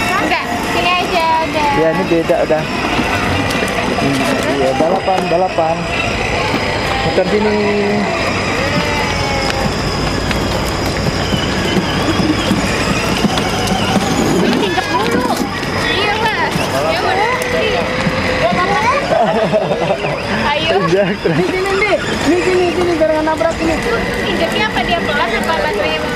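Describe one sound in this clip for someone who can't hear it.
Children and adults chatter and call out nearby outdoors.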